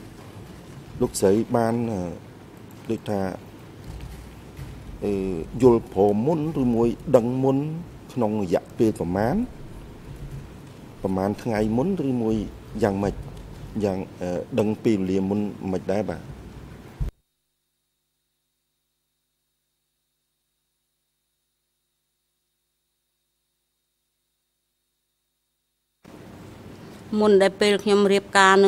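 A man speaks formally into a microphone, heard through a loudspeaker system.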